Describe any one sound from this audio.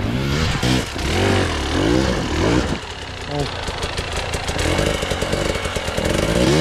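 Rocks crunch and clatter under a dirt bike's tyres.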